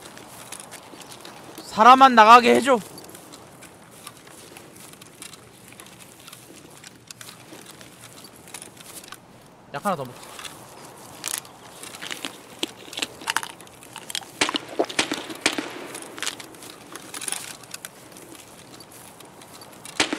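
Footsteps crunch softly on grass and gravel.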